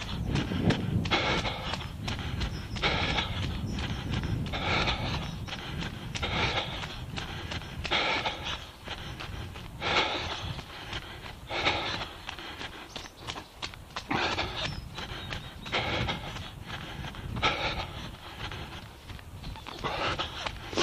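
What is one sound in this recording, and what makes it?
Bicycle tyres crunch over a snowy gravel path.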